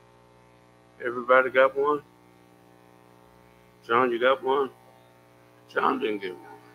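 An elderly man speaks slowly and calmly into a microphone, in short phrases with pauses.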